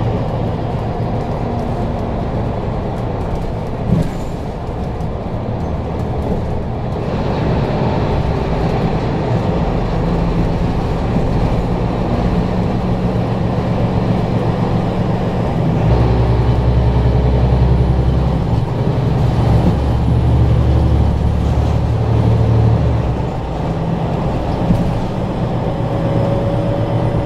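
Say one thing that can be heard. Tyres roll on smooth asphalt.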